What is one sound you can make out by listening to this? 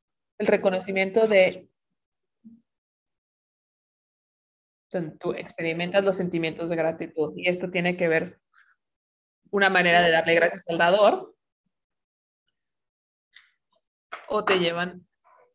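A woman speaks with animation through an online call, in bursts with pauses.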